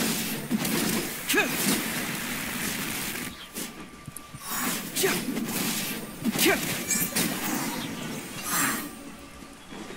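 Sword slashes whoosh and strike with sharp impacts.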